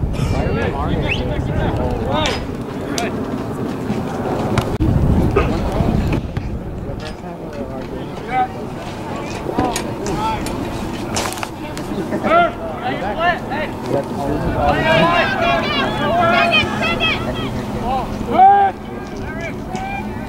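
A crowd of spectators talks and shouts outdoors.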